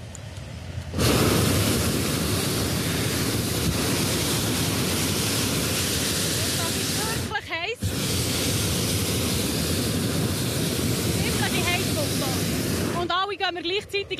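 A gas burner roars loudly and steadily.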